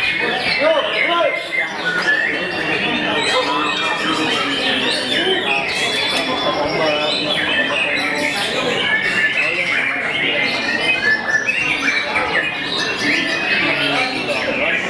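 A songbird sings a rapid, varied song of chirps and whistles close by.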